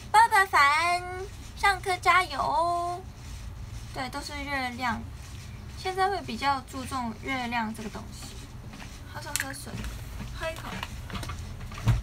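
A young woman talks animatedly and close up.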